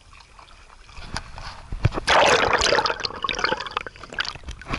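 Water splashes loudly close by.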